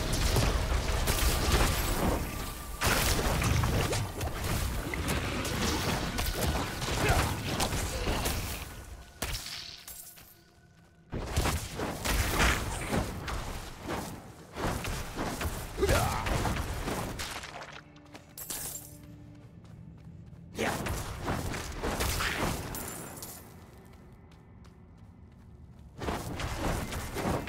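Spells and blows crash loudly in a fight.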